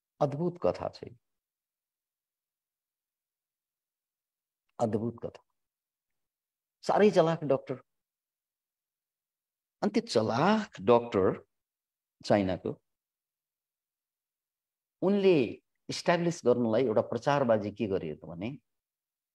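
A middle-aged man speaks calmly in short phrases with pauses, heard through an online call.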